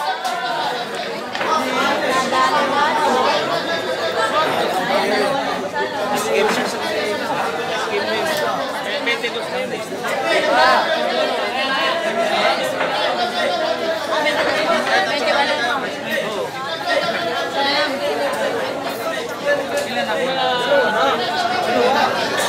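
A crowd of men chatter and call out loudly nearby.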